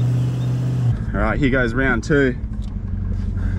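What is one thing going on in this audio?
A young man speaks from close by inside a car.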